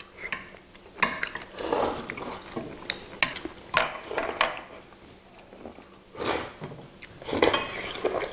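People slurp noodles loudly close to a microphone.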